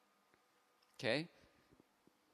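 A man says a short word close to a microphone.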